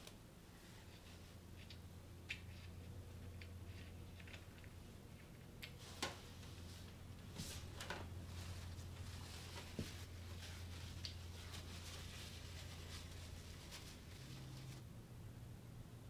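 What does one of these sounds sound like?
Oil trickles softly into a metal pan.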